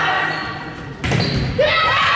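A volleyball is hit with a sharp slap.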